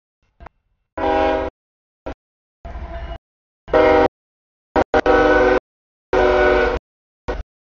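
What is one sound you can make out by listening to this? A train horn blows loudly in long blasts.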